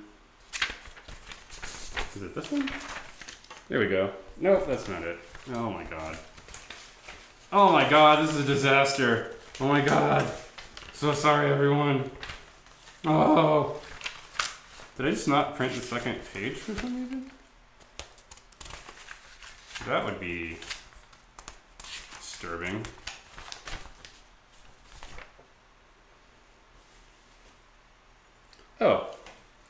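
Sheets of paper rustle and flap.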